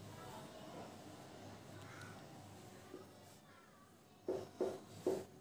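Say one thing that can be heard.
A marker squeaks softly on a whiteboard.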